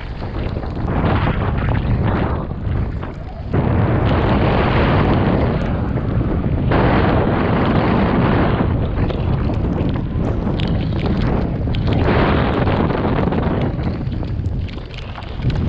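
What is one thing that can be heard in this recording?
Tyres crunch and rattle over loose stones.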